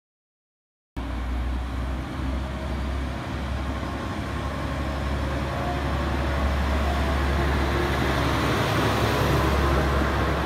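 A train rumbles into the station and rolls slowly past, growing louder.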